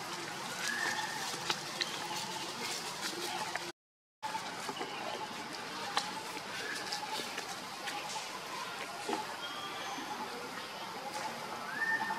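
Dry leaves rustle and crackle as a monkey forages on the ground.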